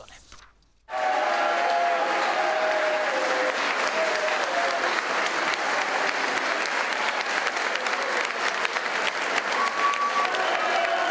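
A crowd applauds and cheers loudly in a large hall.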